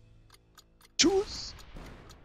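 Laser shots zap in quick succession.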